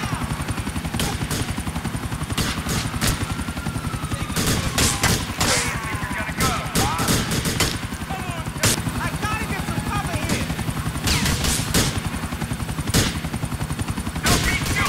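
A rifle fires sharp gunshots.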